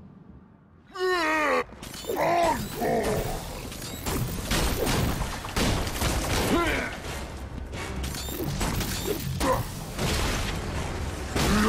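Heavy blows and thuds land during a fight, in a large echoing hall.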